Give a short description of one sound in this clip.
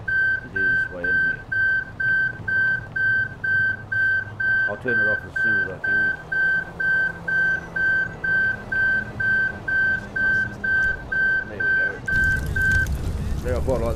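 A fire alarm beeps rapidly and steadily, then stops.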